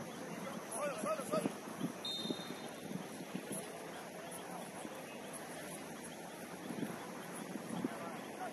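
Players shout to each other across an outdoor pitch.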